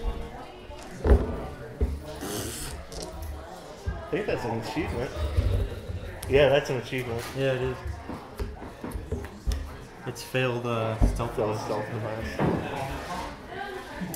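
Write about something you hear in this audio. Game pieces click softly on a table.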